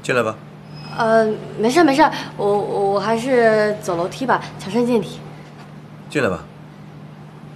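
A young woman speaks lightly and close by.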